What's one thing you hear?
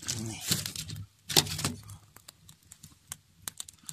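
Logs thud and clatter as they are placed onto a fire.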